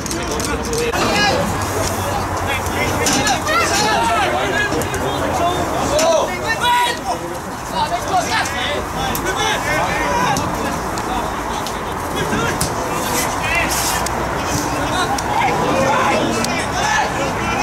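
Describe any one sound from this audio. Football players shout to each other across an open pitch outdoors.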